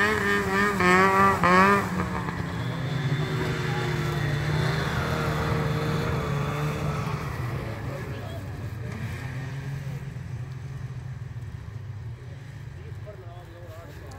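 A snowmobile engine revs loudly close by, then drones steadily as it drives away and fades into the distance.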